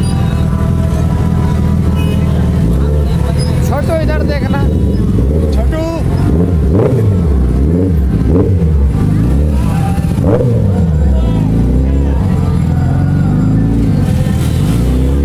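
A motorcycle engine idles and revs loudly close by.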